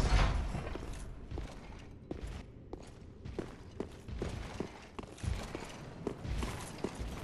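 Heavy armoured footsteps clank on stone.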